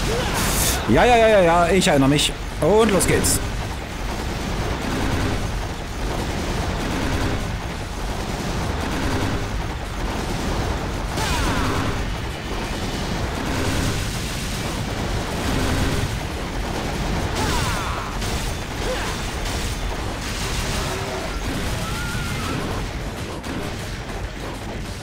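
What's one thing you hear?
Sword blows clash and whoosh in quick bursts.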